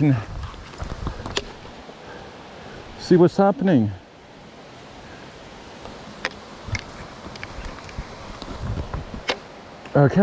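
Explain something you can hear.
A trekking pole clicks and rattles as it is adjusted.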